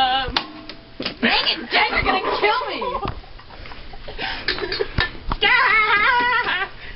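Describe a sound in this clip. A teenage girl talks and laughs nearby.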